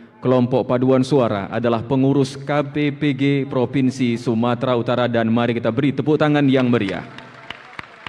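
A group of women sings together through loudspeakers in a large echoing hall.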